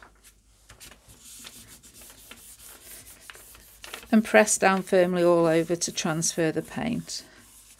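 Sheets of paper rustle and slide as hands smooth them flat.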